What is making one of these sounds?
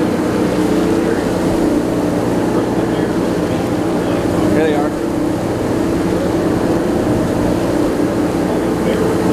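Seabirds call faintly over the water.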